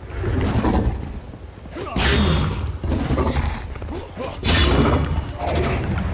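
A monster snarls and growls close by.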